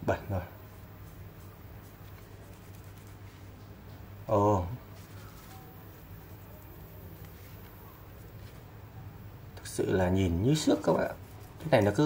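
A cloth rubs softly against a phone.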